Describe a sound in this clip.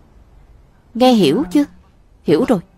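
A young woman asks a question in a clear, raised voice.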